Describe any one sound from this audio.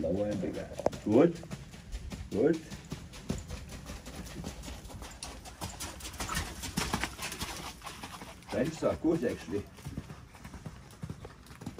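A horse's hooves thud softly on sand in a steady rhythm.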